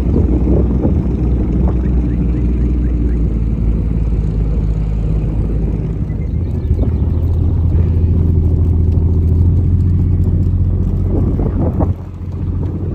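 Sheep bleat loudly nearby.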